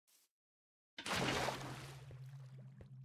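Water splashes as a bucket is emptied.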